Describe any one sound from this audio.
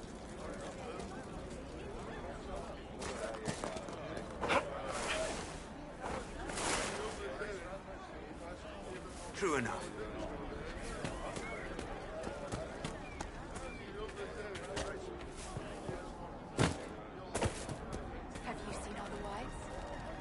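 Footsteps crunch along a stone path and through grass.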